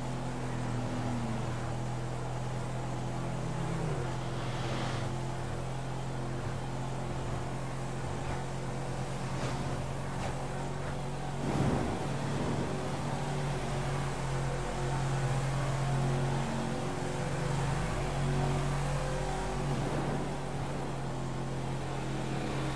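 Other cars pass by.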